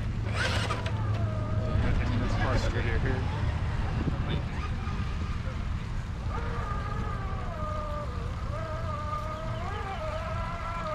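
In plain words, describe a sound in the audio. A small electric motor whines, rising and falling in pitch as a toy truck crawls over rocks.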